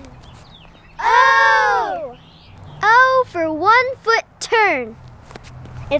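A young girl speaks cheerfully close by.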